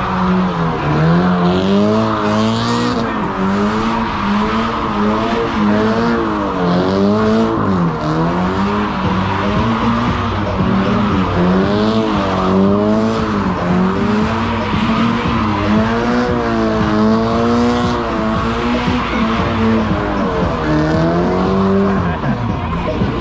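A car engine revs hard, its pitch rising and falling over and over.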